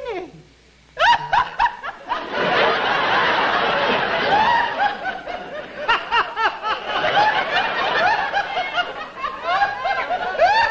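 A middle-aged woman laughs loudly and heartily.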